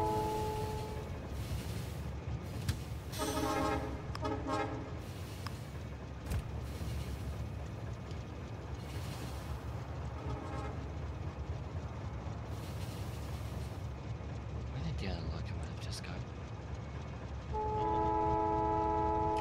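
A train rumbles steadily along a track.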